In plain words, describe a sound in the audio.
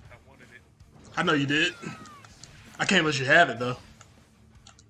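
A young man talks loudly and excitedly into a close microphone.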